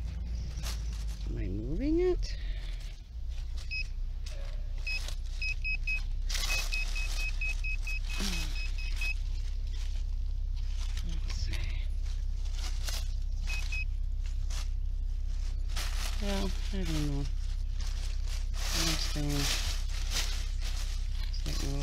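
A hand tool scrapes and digs into dry soil and leaves.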